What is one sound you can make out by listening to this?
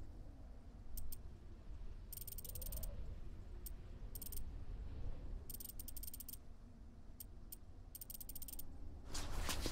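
Short menu clicks tick softly.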